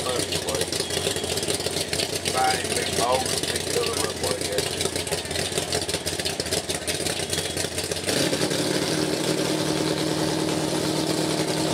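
A small engine runs roughly nearby.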